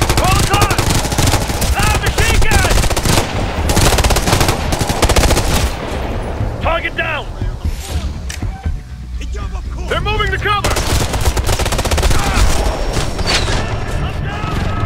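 Rapid gunfire crackles.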